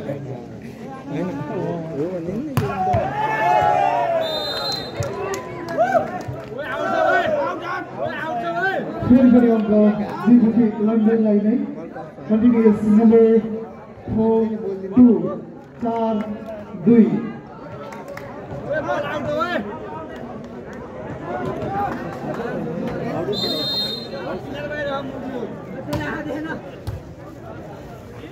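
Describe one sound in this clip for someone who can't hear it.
Players shout to each other on the court.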